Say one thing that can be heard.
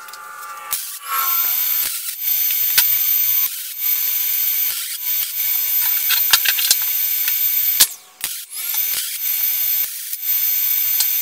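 A MIG welder crackles and sizzles as it welds steel.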